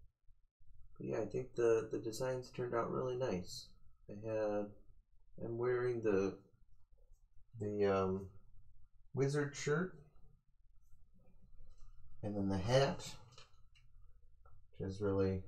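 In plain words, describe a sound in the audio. A man talks calmly into a close microphone, in short phrases with pauses.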